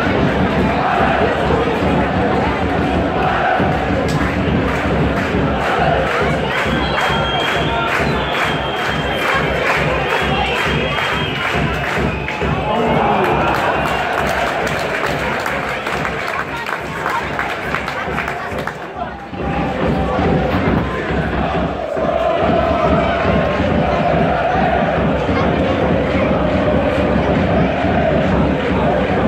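A large crowd of football fans chants and sings loudly outdoors.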